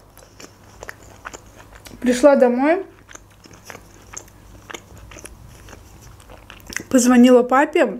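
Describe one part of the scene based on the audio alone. Wet chewing and smacking sounds come from a young woman eating up close.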